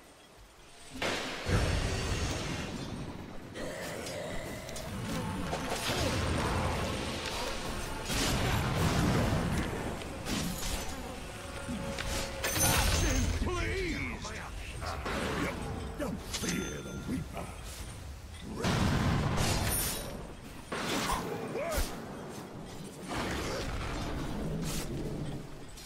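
Game spell effects crackle and clash during a fight.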